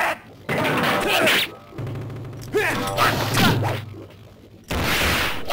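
Swords slash and strike in quick bursts of game sound effects.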